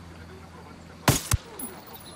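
A rifle fires loud shots close by.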